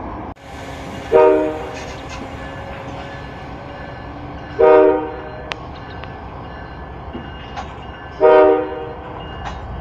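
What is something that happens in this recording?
A locomotive horn blares in several loud blasts.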